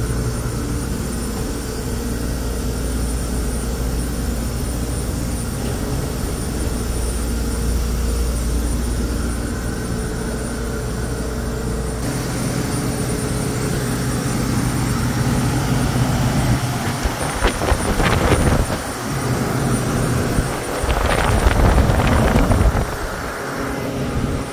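Cooling fans whir with a steady, low mechanical hum.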